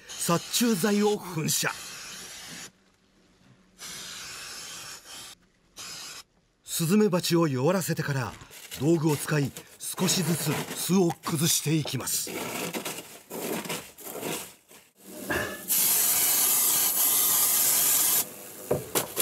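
An insecticide spray hisses in short bursts.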